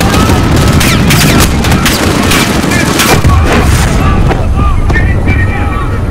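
Explosions boom loudly close by.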